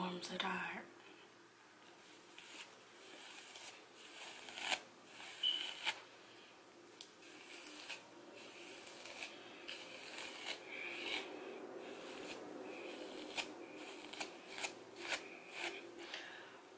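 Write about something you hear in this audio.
A comb rakes through thick hair with soft scratching strokes.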